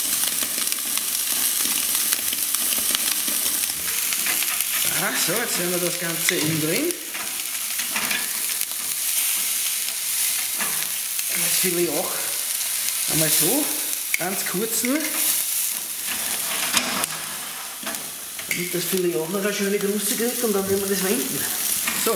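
Meat sizzles loudly under intense heat.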